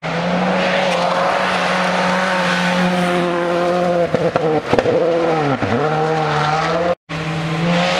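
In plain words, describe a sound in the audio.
A rally car engine roars at high revs as the car speeds past.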